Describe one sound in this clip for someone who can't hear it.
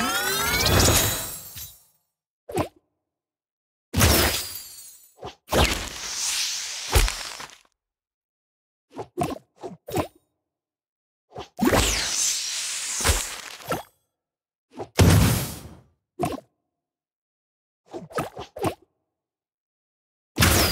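Chiming puzzle-game sound effects play in short bursts.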